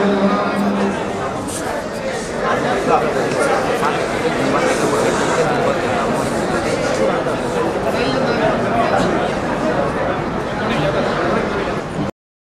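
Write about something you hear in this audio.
A crowd of men talks and murmurs at once.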